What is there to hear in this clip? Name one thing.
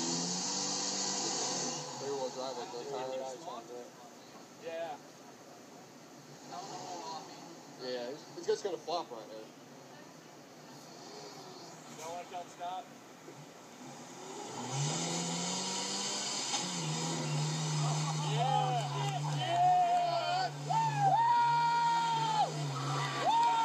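A truck engine revs and strains.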